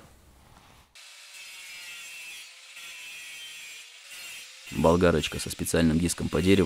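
A power grinder whirs against wood.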